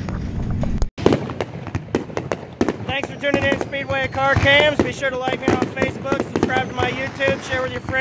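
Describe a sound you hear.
Fireworks pop and crackle in the distance.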